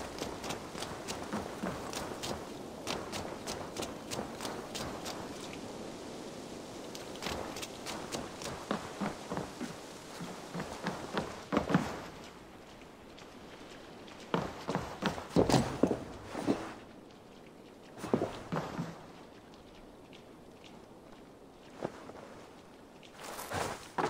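Footsteps walk steadily on dirt and then on wooden boards.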